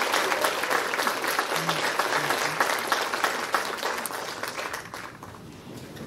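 A large audience applauds in an echoing hall, then the clapping dies away.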